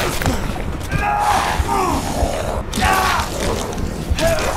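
A large creature roars and growls up close.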